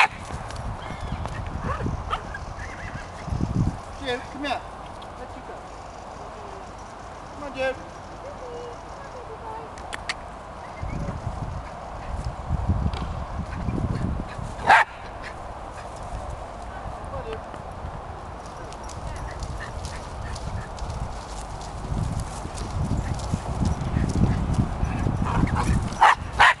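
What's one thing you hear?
Horses' hooves thud on grass as they trot and canter.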